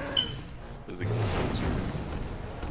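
Glass shatters and debris scatters.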